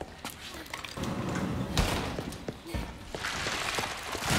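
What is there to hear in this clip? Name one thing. A heavy metal gate rattles open.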